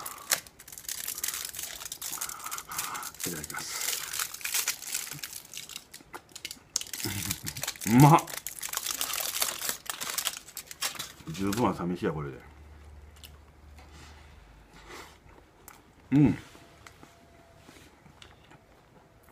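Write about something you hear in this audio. A man chews and munches crunchy food close to a microphone.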